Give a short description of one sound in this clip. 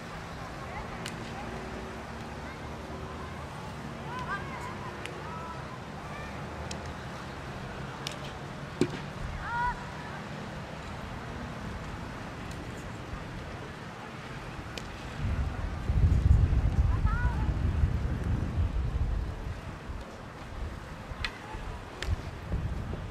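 Hockey sticks clack against a ball in the distance.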